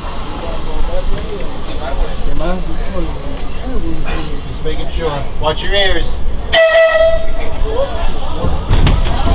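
Men talk nearby over the train noise.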